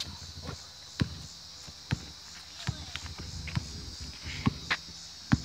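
A basketball bounces on an outdoor court with a sharp slap.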